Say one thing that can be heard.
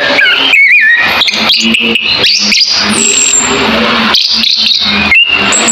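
A songbird sings loudly and rapidly close by, with whistles, trills and sharp chirps.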